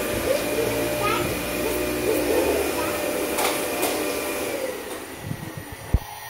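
A toy vacuum cleaner plays a whirring, tinkling tune.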